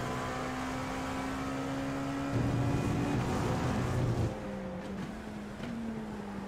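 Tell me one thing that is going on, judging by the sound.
A race car engine whines steadily, shifting pitch as it changes gear.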